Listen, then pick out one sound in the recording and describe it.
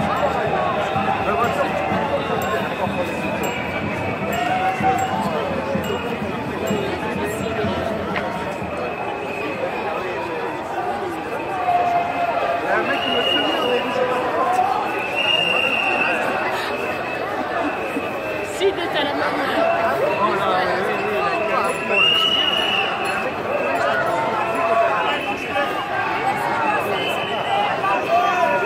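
A crowd of marching people chatters and calls out all around, outdoors.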